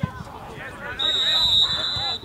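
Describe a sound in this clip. A referee's whistle blows a long shrill blast.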